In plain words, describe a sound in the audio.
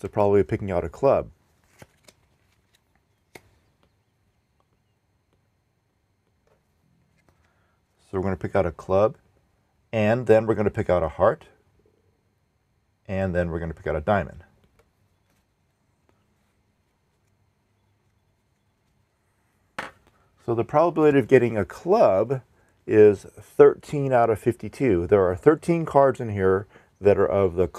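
A man speaks calmly into a close microphone, explaining in pauses.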